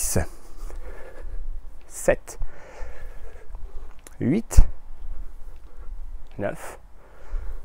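A man speaks in short bursts close by.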